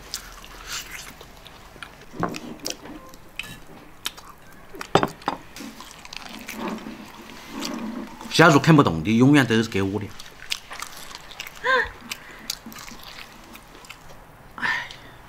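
A man chews and smacks his lips loudly up close.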